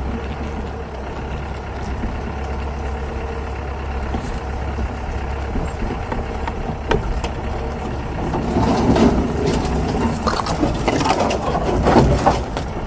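A vehicle rattles and jolts over rough ground.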